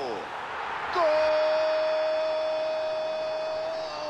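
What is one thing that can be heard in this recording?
A stadium crowd roars loudly as a goal is scored.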